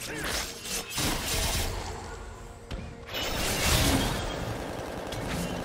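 Game spell effects crackle and whoosh during a fight.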